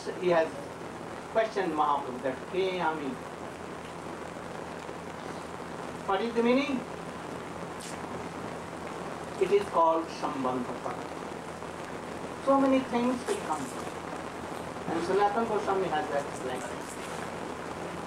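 An elderly man speaks calmly into a microphone, pausing often between phrases.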